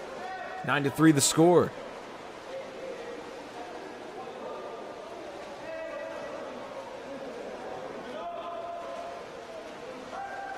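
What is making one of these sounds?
Water splashes as swimmers thrash through a pool, echoing in a large indoor hall.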